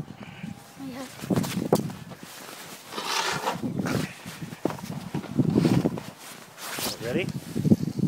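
Snow crunches and scrapes under a snowboard close by.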